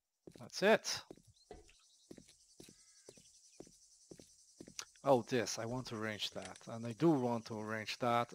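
Footsteps crunch on dirt outdoors.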